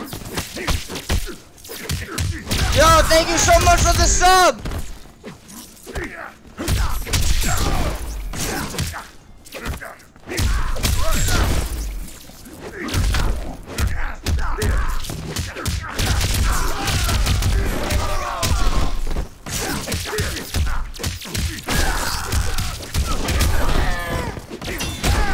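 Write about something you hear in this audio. Punches and kicks thud and crack in a game fight.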